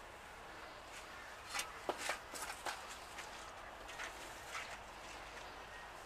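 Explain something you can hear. A lizard rustles through dry leaves as it crawls.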